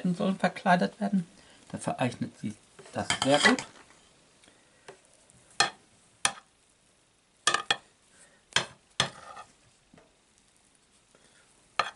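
A knife scrapes softly as it spreads frosting.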